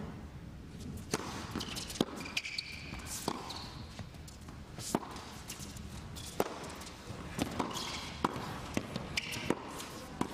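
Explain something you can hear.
A tennis racket strikes a ball with sharp pops.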